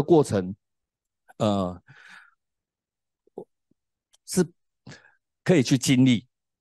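A man speaks into a microphone with animation, in short bursts.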